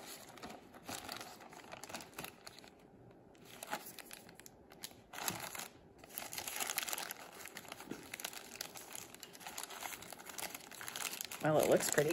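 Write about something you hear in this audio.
Paper crinkles and rustles as hands fold it.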